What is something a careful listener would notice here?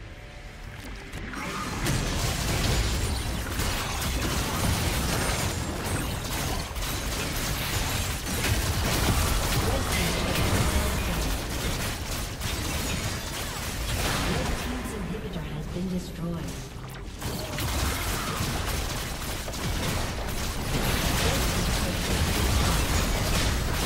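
Magic blasts and clashing hits crackle in a hectic battle.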